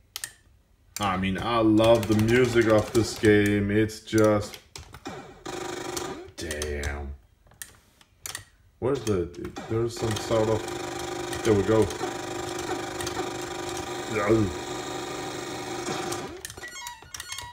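Chiptune video game music plays from a television speaker.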